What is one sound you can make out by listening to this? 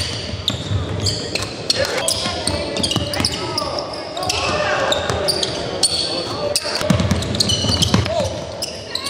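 Sneakers squeak sharply on a hardwood floor in a large echoing hall.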